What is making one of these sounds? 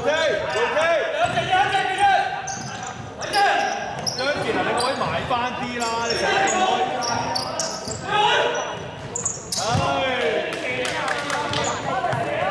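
Young women shout and call out to one another in an echoing hall.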